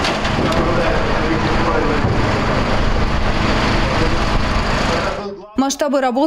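A hydraulic rescue tool roars as it cuts through car metal.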